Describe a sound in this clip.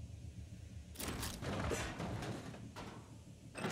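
A crate is thrown and clatters against metal.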